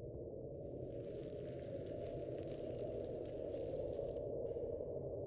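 A brush strokes across paper.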